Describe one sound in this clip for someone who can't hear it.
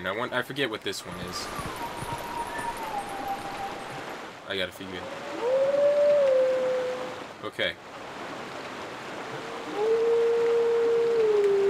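A wolf howls in long, steady notes that slide between pitches.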